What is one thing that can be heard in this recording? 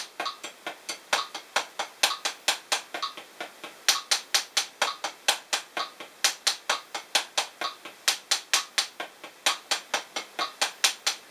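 Drumsticks tap quickly and steadily on a practice pad, with some strokes louder than others.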